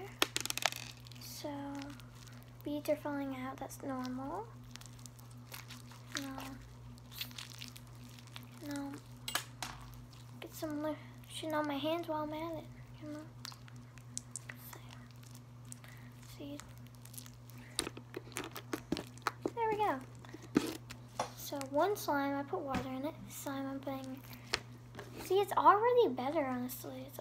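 Slime squishes and crackles between fingers.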